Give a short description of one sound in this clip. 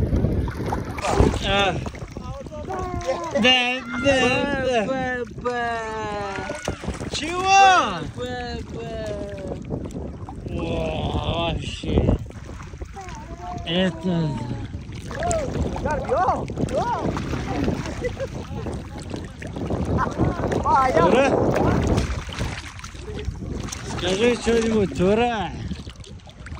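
Sea water laps and splashes gently.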